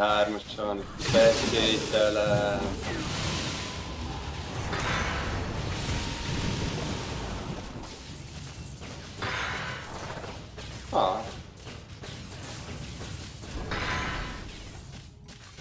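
Game battle effects clash and burst.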